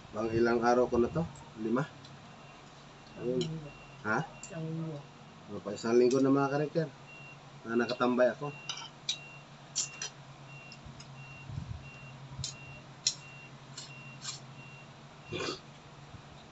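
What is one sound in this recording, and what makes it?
A fork and spoon clink on a ceramic plate.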